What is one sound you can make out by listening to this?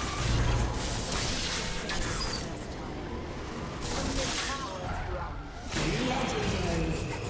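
Magic spells whoosh and crackle in a video game fight.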